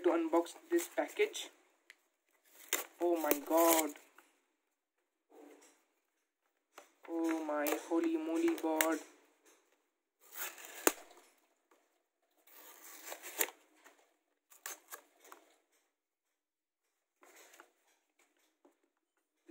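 Paper and plastic packaging rustle and crinkle as it is unwrapped.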